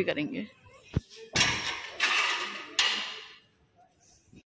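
A metal bolt scrapes and rattles on a gate.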